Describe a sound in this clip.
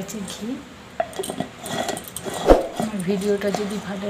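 A plastic lid clicks and scrapes as it is screwed onto a glass jar.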